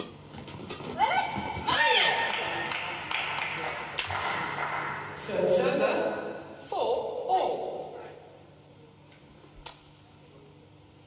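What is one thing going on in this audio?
A shuttlecock is struck sharply with a racket in a large echoing hall.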